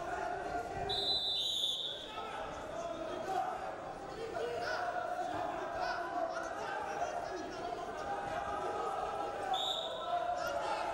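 A referee blows a short whistle twice.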